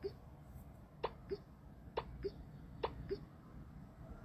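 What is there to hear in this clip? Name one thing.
Cards flick down with short, soft clicks.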